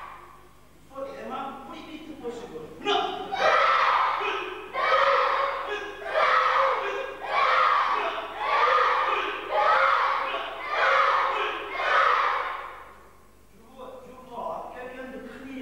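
A man calls out commands loudly.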